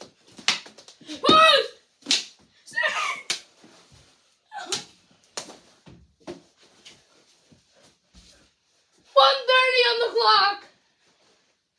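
Boys shout and cheer excitedly close by.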